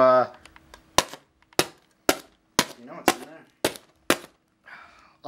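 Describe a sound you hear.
A utility knife clicks sharply several times.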